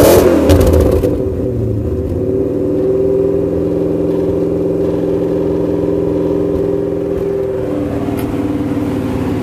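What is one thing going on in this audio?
A car engine idles with a deep, steady rumble close by.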